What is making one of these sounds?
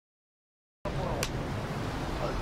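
A clapperboard snaps shut.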